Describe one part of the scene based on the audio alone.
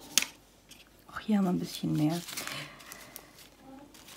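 Paper rustles and crinkles under a hand.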